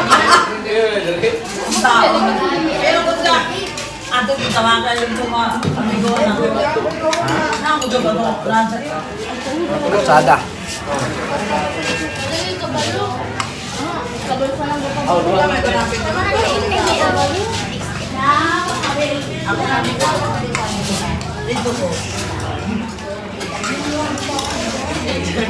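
Several men and women chat and talk over one another nearby.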